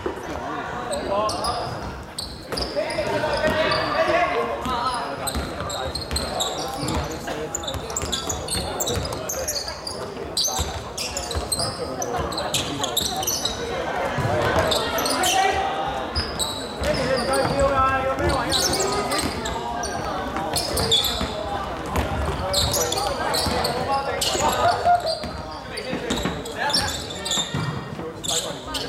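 Young men shout across the court.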